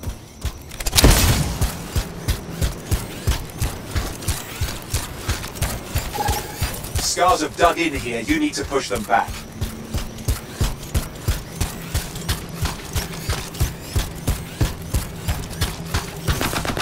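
Heavy metal footsteps thud quickly and steadily on the ground.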